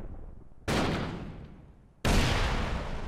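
A gun fires loud shots that echo and fade.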